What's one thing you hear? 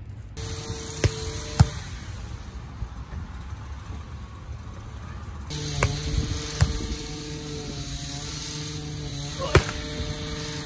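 A volleyball is struck by hand outdoors with sharp slaps.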